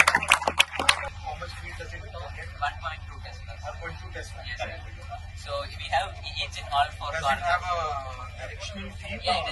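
Men talk in a murmuring crowd.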